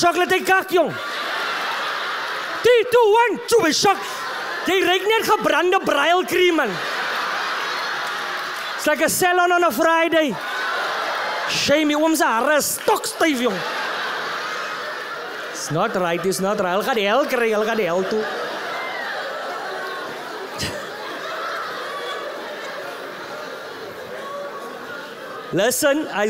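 An audience laughs.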